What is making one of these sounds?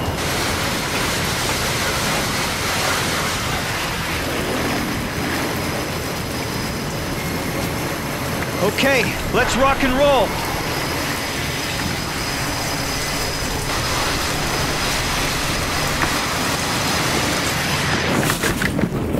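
Strong wind howls across open water.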